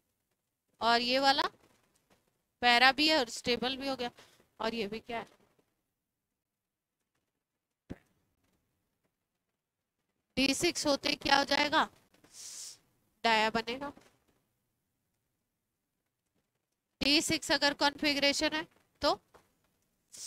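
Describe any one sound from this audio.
A woman speaks calmly into a close microphone, in bursts with pauses.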